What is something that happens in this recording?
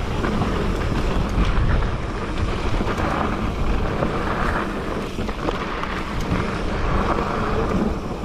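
Bike tyres crunch and rumble over a dirt trail.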